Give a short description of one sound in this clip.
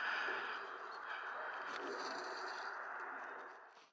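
A model glider skids and scrapes across frosty ground.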